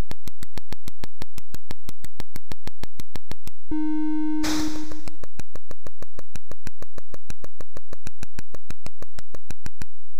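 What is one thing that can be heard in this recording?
Rapid electronic clicks tick at a steady, fast pace.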